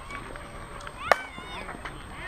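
A bat cracks against a softball.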